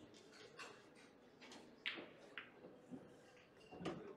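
A cue sharply strikes a pool ball.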